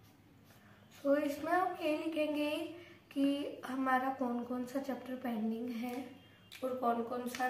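A young girl talks close by with animation.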